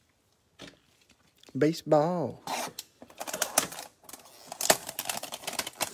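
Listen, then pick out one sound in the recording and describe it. Cardboard boxes rustle and scrape as hands shift them.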